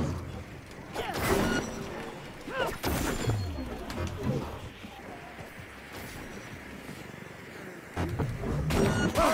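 A blade swishes through the air and strikes with sharp impacts.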